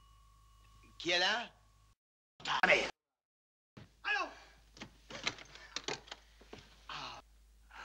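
A man speaks sharply and urgently.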